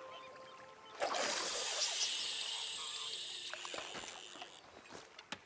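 A fishing line whizzes out as a rod is cast.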